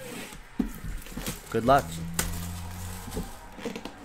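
Plastic wrap crinkles as it is torn off a box.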